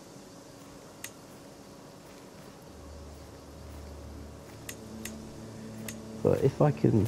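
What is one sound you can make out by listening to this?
Soft menu clicks sound now and then.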